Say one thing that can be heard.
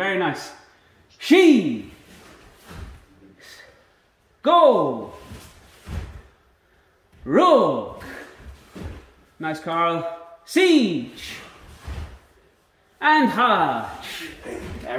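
Bare feet thump and slide on a wooden floor.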